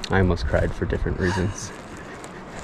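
A man speaks breathlessly close by.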